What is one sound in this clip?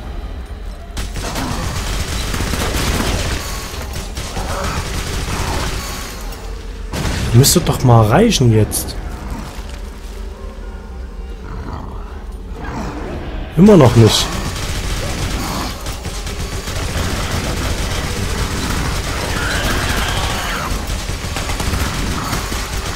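A rapid-firing gun shoots loud, fast bursts.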